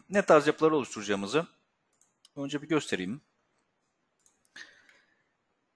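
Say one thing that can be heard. A computer mouse clicks a few times.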